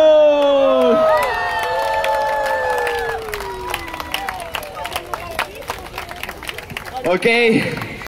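A crowd cheers and whistles outdoors.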